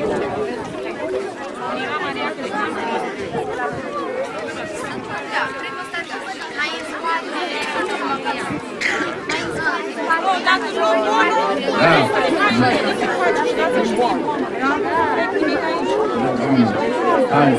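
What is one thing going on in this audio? A crowd of children and adults chatter in the background.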